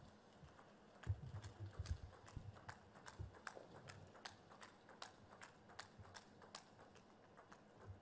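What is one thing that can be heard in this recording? A table tennis ball clicks back and forth between paddles and the table in a quick rally.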